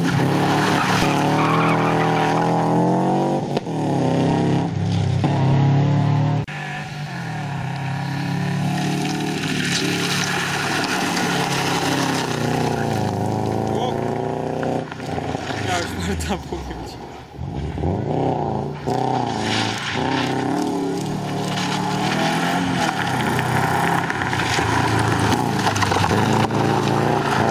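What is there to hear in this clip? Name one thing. Gravel sprays and crunches under spinning tyres.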